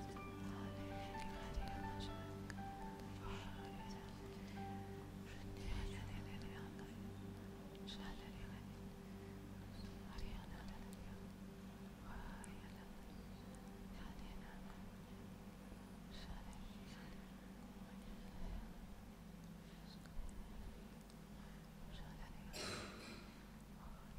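A woman speaks calmly into a microphone, heard through loudspeakers in an echoing hall.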